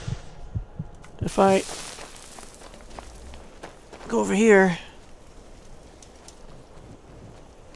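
A magic spell crackles softly in a hand.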